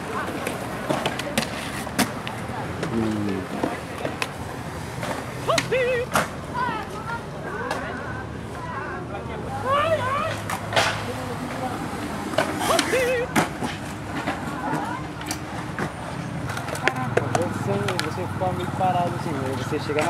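Skateboards clack and snap sharply against concrete.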